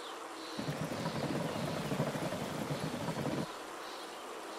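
A bicycle rumbles over wooden bridge planks.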